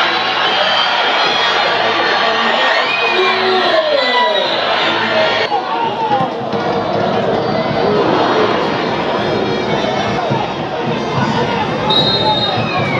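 A large stadium crowd cheers and chants loudly outdoors.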